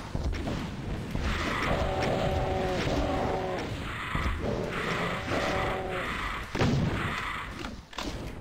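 Fireballs whoosh past.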